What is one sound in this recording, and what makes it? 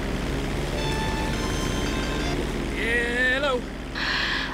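A phone rings briefly.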